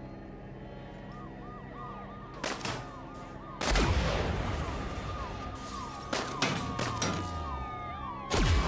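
Police sirens wail nearby.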